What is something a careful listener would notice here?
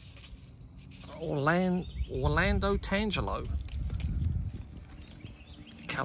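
Leaves rustle as a hand brushes through a small plant.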